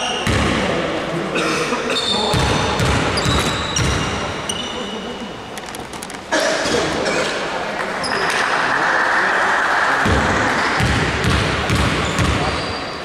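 Sneakers squeak sharply on a court.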